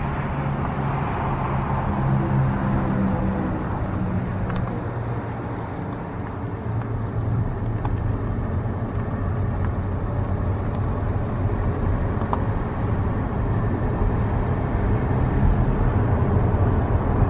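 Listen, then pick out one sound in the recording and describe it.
A car engine hums low and steadily as the car drives along.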